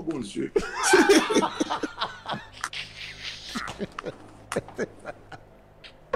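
A man laughs heartily into a close microphone.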